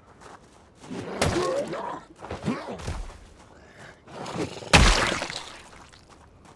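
Heavy blows thud against a body in a short fight.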